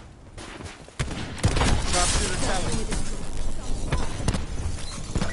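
Rifle shots crack sharply from close by.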